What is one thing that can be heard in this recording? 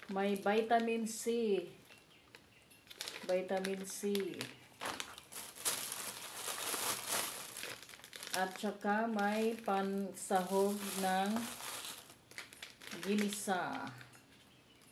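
A woman speaks close by, calmly and with animation.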